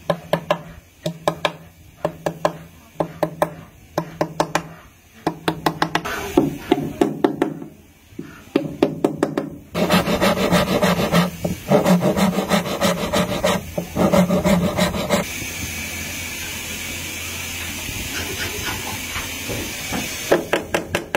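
A hammer taps sharply on metal in quick bursts.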